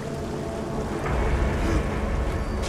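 Water gushes and hisses loudly nearby.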